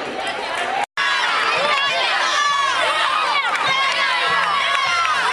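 Children cheer and shout loudly during a tug of war.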